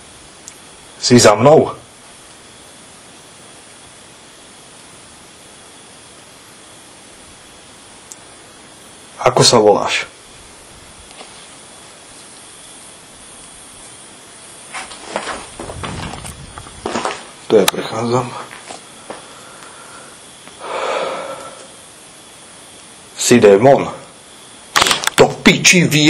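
A man speaks quietly in short bursts, close by.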